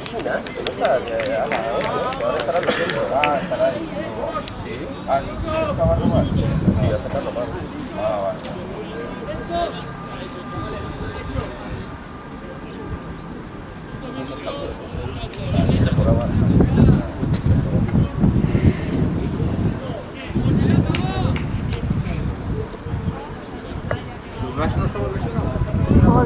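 Players shout to each other across an open field.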